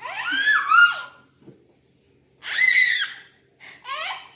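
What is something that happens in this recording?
A young boy squeals with laughter close by.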